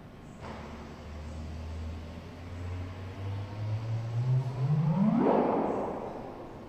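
A low humming tone from a loudspeaker rises quickly in pitch to a sharp chirp, then stops.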